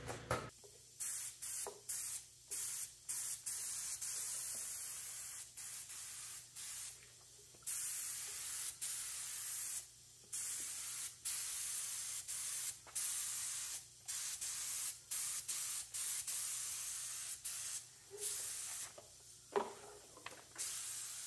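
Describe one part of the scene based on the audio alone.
A spray gun hisses in short, sharp bursts.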